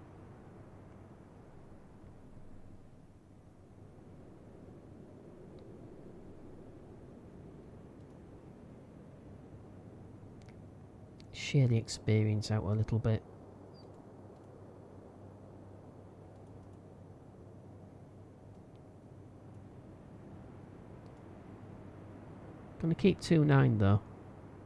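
Rain patters on the sea.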